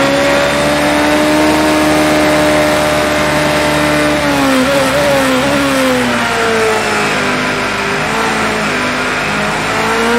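A racing car engine screams at high revs, dropping in pitch as the car slows and shifts down.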